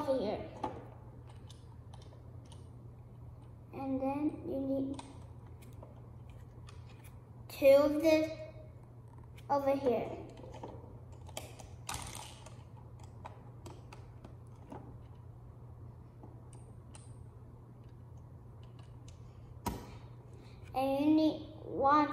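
Plastic toy bricks click and clatter on a table.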